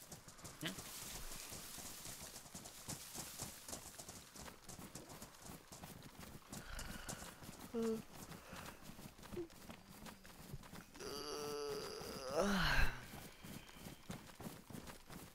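Footsteps swish and thud through grass.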